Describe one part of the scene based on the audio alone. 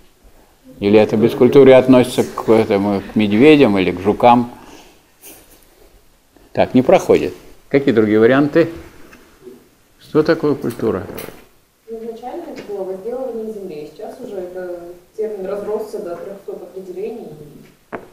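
An elderly man speaks calmly in a room.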